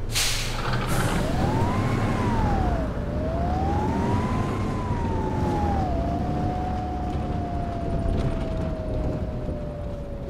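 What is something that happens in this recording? A bus engine whines, rising and falling in pitch as it pulls away.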